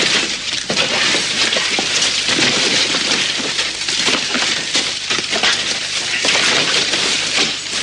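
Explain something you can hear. A man rummages through debris, knocking boards about.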